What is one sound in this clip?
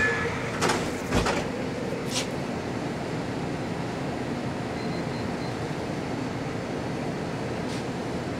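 A large sheet of paper rustles and crinkles close by.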